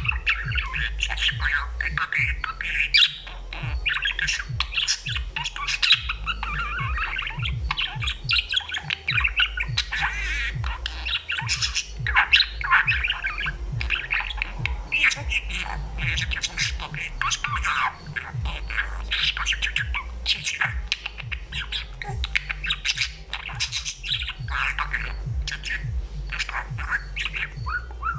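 A budgerigar chatters and warbles.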